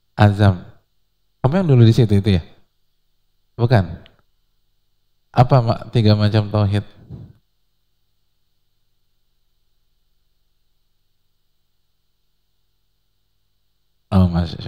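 A man preaches into a microphone in short bursts with long pauses.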